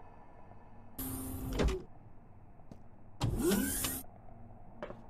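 A heavy door slides open with a mechanical whoosh.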